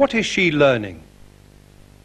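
A man speaks clearly through a microphone.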